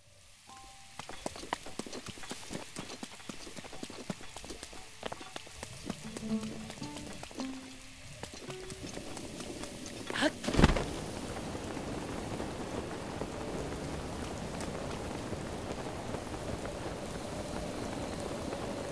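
Rain patters steadily.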